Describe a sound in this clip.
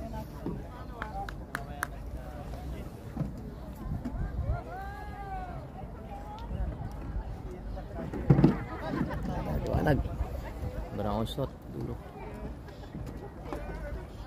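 A group of men and women talk and call out outdoors.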